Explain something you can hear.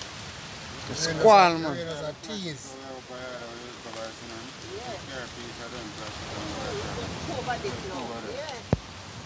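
A young man talks with animation close by.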